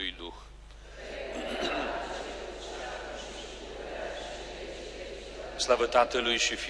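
A crowd of people recites a prayer together in a low murmur.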